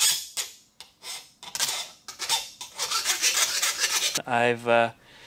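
A metal tool scrapes across a metal plate.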